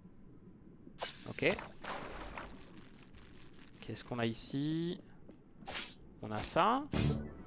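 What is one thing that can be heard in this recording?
A young man speaks into a close microphone with animation.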